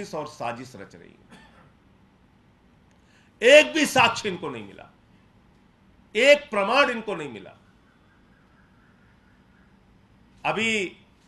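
A middle-aged man speaks forcefully into microphones, in short bursts with pauses.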